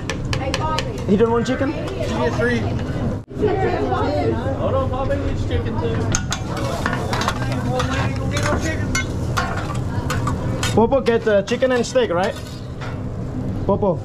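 Metal spatulas scrape and clatter on a hot griddle.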